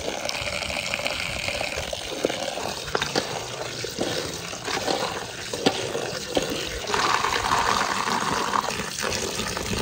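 Hands stir and rub wet berries in a metal bowl.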